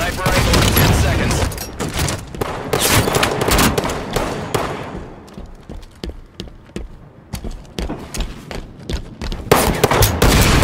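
A heavy gun fires in rapid bursts with loud blasts.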